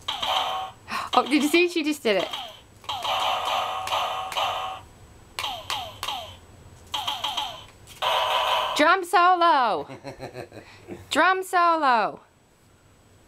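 A baby squeals and babbles.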